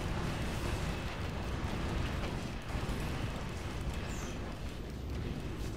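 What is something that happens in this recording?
Rapid gunfire crackles amid loud game explosions.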